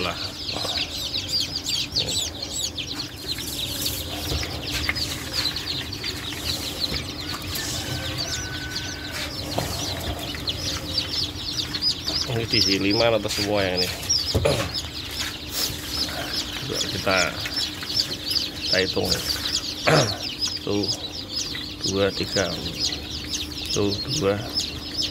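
Many chicks cheep loudly and constantly.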